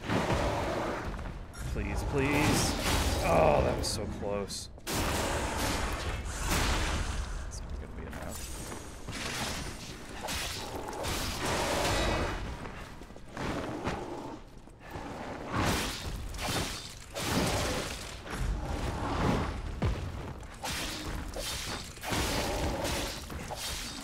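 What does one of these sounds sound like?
A monster growls and roars.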